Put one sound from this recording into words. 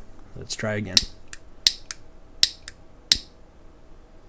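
A lighter clicks several times.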